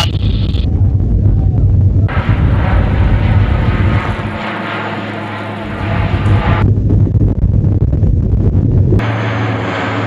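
Aircraft engines roar loudly and steadily from close by.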